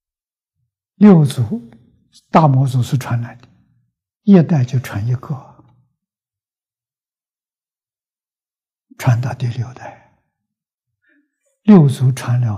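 An elderly man speaks calmly, close to a microphone, in short phrases with pauses.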